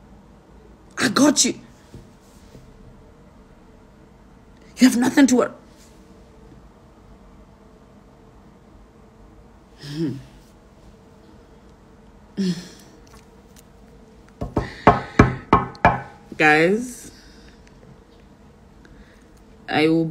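A young woman speaks calmly in short bursts, close to a phone's microphone.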